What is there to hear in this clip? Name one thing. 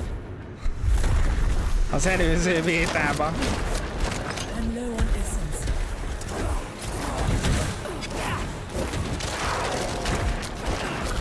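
Clashing and crackling fight effects from a video game ring out.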